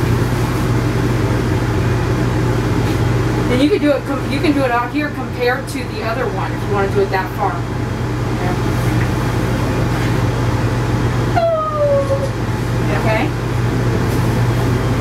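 A blow dryer whirs steadily close by.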